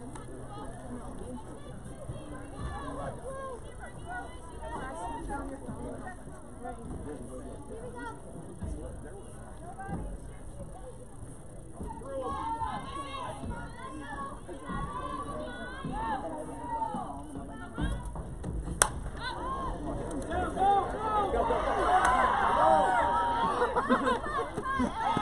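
Young women on a field shout and cheer from a distance, getting louder after the hit.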